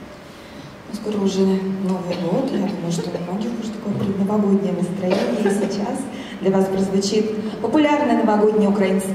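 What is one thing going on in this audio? A man speaks to the audience through a microphone in an echoing hall.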